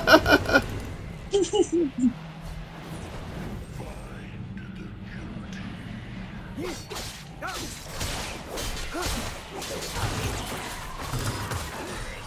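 Video game combat sound effects clash and whoosh.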